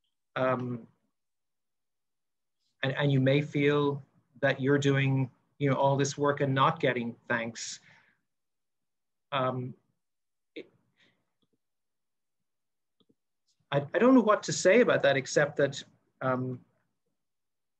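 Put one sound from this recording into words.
A middle-aged man speaks calmly over an online call, in short bursts with pauses.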